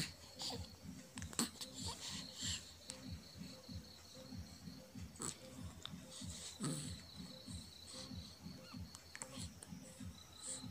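A baby coos and babbles softly up close.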